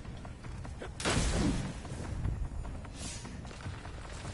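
Gunshots and blasts ring out in a video game.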